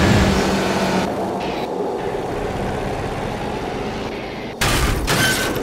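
A quad bike engine revs and rumbles over rough ground.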